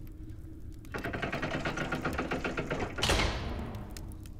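A heavy iron gate grinds and rattles as it rises.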